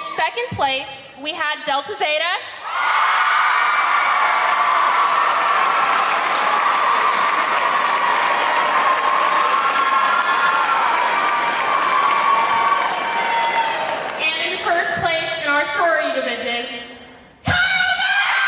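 A young woman speaks into a microphone over a loudspeaker.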